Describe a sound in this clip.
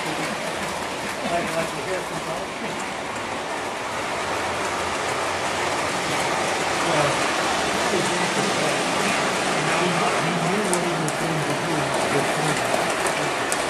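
Model trains rumble and clatter along their tracks.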